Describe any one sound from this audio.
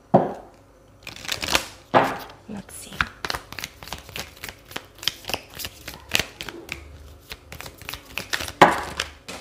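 Cards shuffle and flick against each other.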